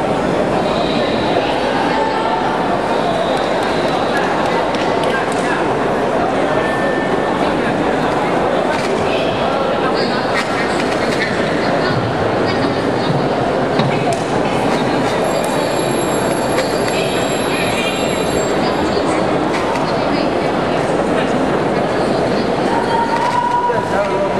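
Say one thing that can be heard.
A large crowd chatters steadily in a big echoing hall.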